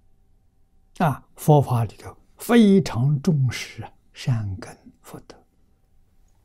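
An elderly man speaks calmly and clearly into a close microphone.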